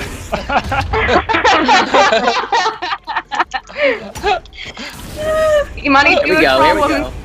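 Several adults talk and laugh with animation over an online call.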